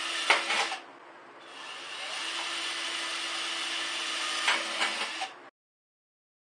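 A power drill whirs as it bores into a metal can.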